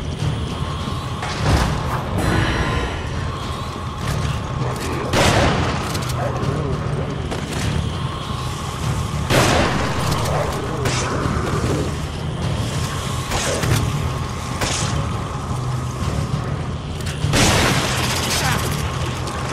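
Footsteps clank on metal stairs.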